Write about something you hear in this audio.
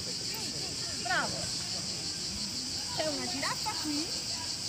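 Young children call out in high voices.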